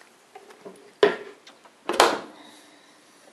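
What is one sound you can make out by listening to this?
A dishwasher door thuds shut.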